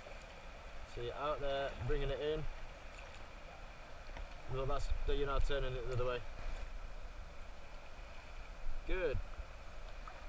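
A man talks nearby outdoors, in short bursts.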